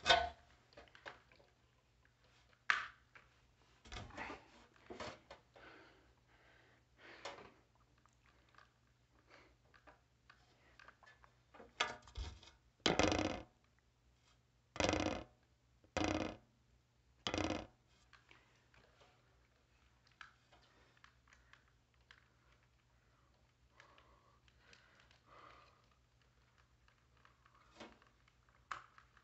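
Plastic clicks and scrapes as a smoke detector is twisted off and back onto its base.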